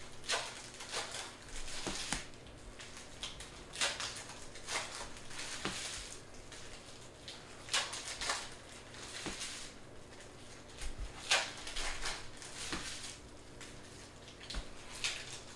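Trading cards slap and shuffle as they are stacked on a table.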